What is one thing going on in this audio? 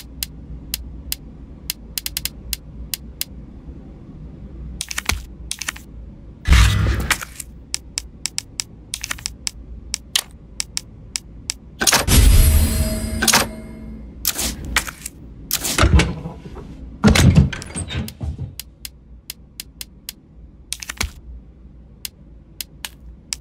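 Short, sharp menu clicks tick again and again.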